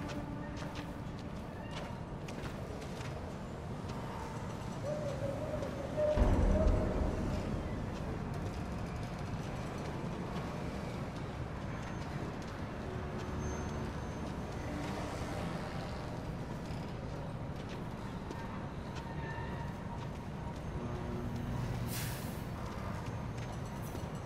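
Footsteps crunch slowly on snow.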